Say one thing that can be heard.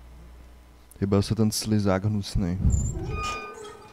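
A heavy metal door handle clanks and grinds open.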